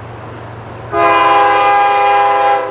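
A locomotive horn blares loudly.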